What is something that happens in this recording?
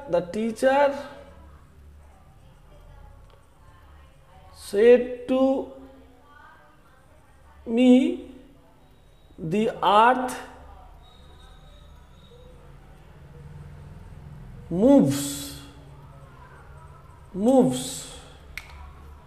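A man speaks slowly and clearly, in short phrases with pauses.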